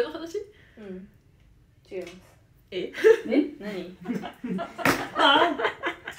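A young woman speaks and giggles close by.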